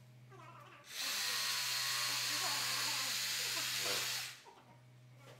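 A power tool runs with a loud, steady whine.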